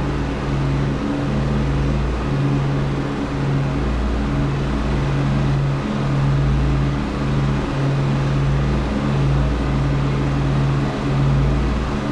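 An aircraft engine drones loudly with a steady, pulsing throb.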